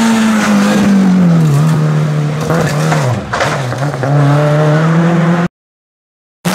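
A rally car engine roars loudly and races past, shifting gears.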